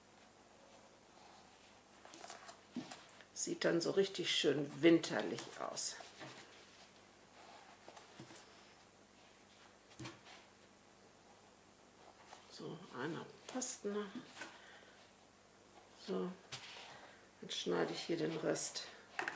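Hands rustle and rub soft fabric.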